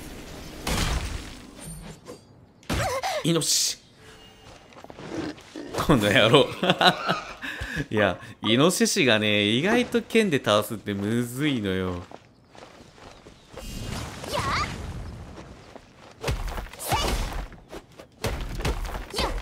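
A sword swishes and strikes.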